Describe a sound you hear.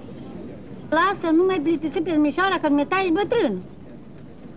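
A woman speaks with animation nearby.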